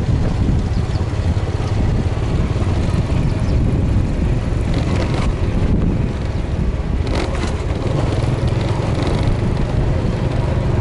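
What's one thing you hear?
Wind rumbles steadily against a moving vehicle outdoors.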